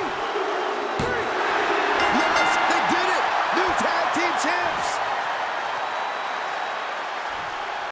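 A large arena crowd cheers and whistles.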